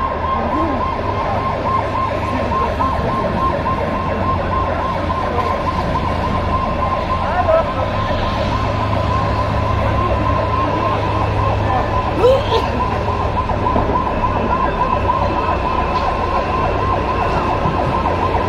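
A large crowd shouts and whistles outdoors.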